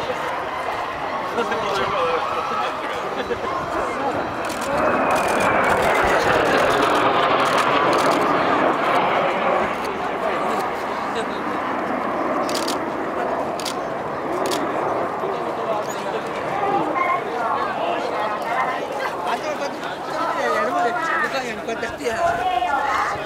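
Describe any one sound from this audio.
Jet planes roar loudly overhead, the roar swelling and falling in pitch as they pass.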